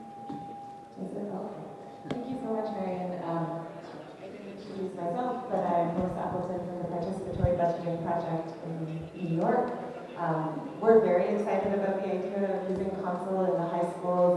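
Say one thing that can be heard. A woman speaks with animation into a microphone, heard through loudspeakers.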